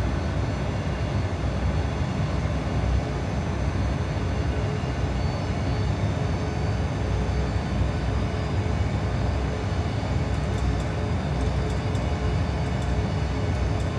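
Jet engines drone with a steady low roar.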